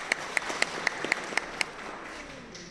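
An audience claps in a steady rhythm in a large hall.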